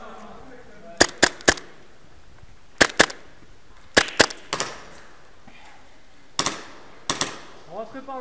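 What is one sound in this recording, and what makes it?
An airsoft gun fires sharp, quick shots.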